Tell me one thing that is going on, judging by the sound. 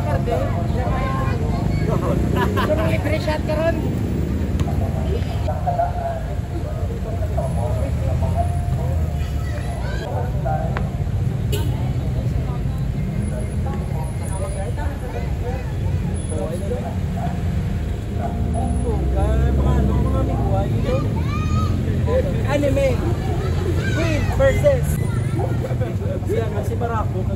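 A group of young men talk and shout with animation outdoors.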